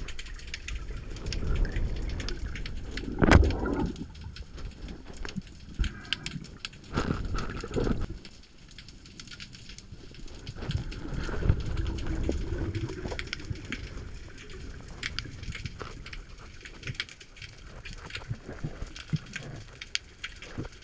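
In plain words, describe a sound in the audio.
Water surges and rumbles all around, heard underwater.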